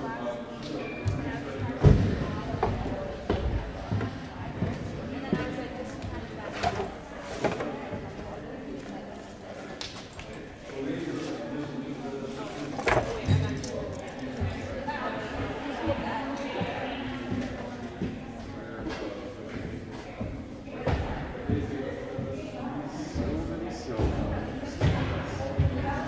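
Balls thump on a hard floor, echoing around the hall.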